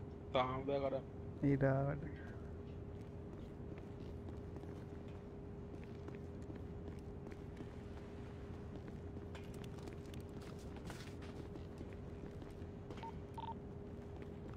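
Footsteps tread on a metal floor.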